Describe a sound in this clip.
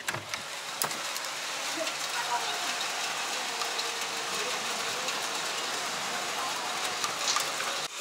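A steady hiss of city noise comes from outdoors.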